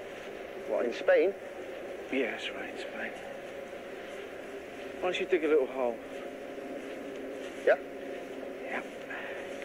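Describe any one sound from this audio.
A young man answers briefly and quietly.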